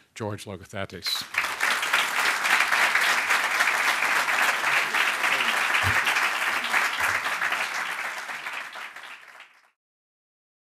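An audience applauds in a large hall, then the applause fades away.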